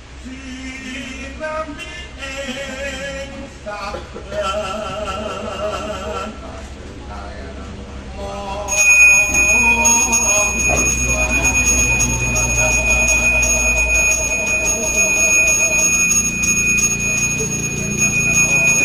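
A man chants in a wavering, sing-song voice nearby.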